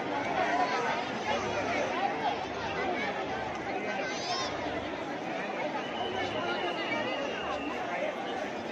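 A large crowd chatters loudly all around, outdoors.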